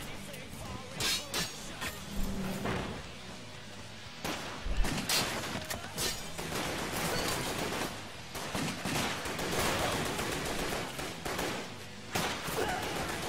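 Gunshots and slashing blows crack sharply in bursts.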